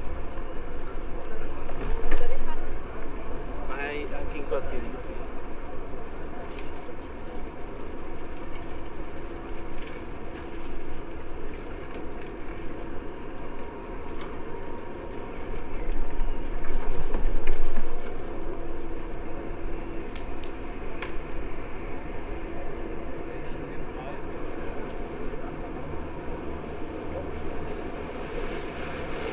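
Tyres roll steadily over pavement.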